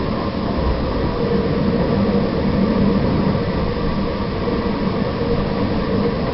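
A tram rumbles steadily along the rails.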